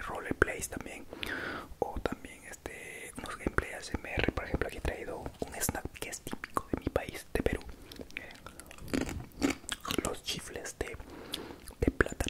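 A young man whispers softly close to a microphone.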